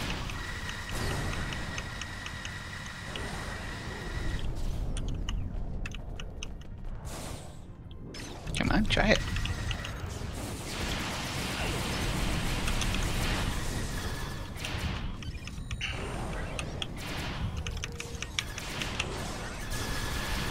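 Laser weapons fire in rapid zaps.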